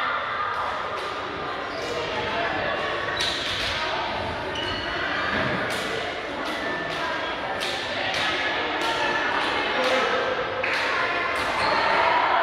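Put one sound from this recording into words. A group of young women cheer and shout excitedly together in a large echoing hall.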